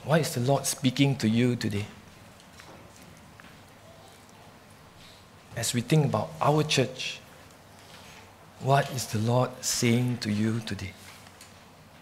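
A man speaks calmly through a microphone, in short bursts with long pauses.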